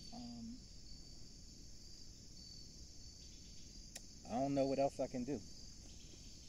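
A man speaks briefly and casually nearby, outdoors.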